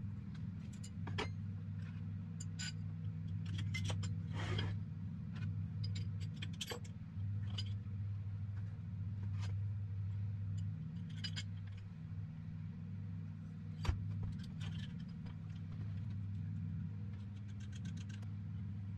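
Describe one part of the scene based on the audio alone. Metal parts clink and knock against each other.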